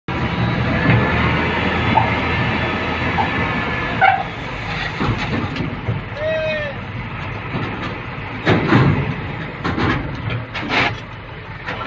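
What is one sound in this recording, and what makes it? A truck engine rumbles steadily close by.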